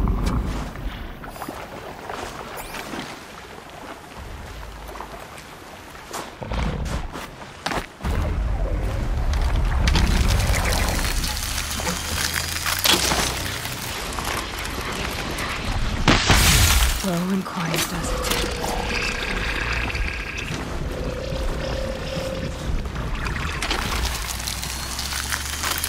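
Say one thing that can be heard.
Wind howls steadily outdoors in a snowstorm.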